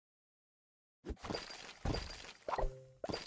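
Game pieces burst with chiming, sparkling sound effects.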